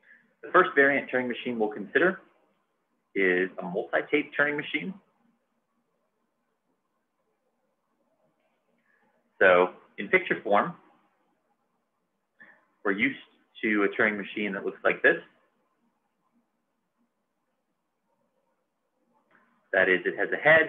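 A man speaks calmly and close to a microphone, explaining in pauses.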